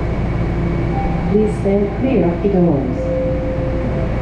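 A subway train's brakes squeal as it comes to a stop.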